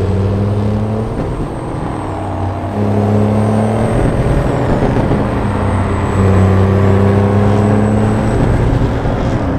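Tyres rumble on a road.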